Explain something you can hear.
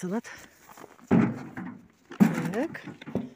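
A plastic pot knocks down into a metal wheelbarrow.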